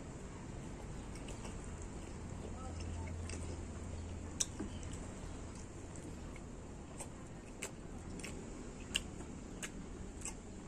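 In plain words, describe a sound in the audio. Fingers squish and scrape through rice on a plate.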